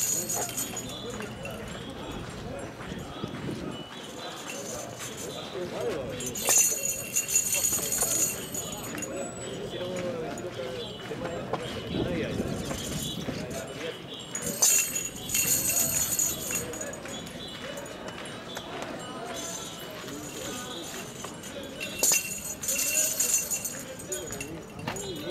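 Young women chant together in a procession outdoors.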